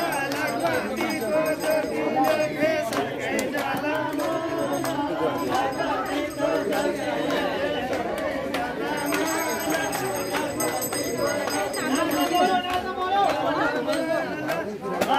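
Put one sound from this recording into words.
A crowd of women chatter nearby.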